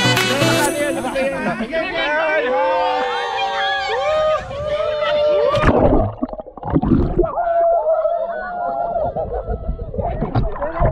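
A group of young men and women shout and cheer close by.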